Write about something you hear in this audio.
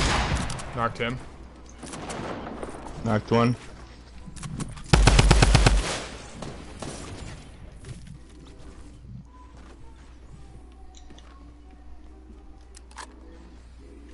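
Wooden walls snap into place in quick succession in a video game.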